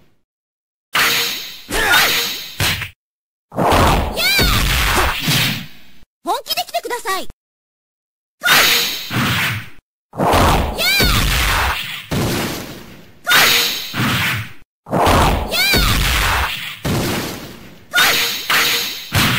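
Punches and kicks land with sharp thuds in a video game fight.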